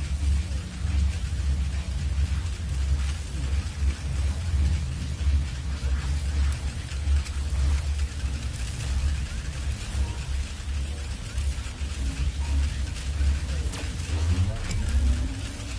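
Magical sparkles chime and crackle.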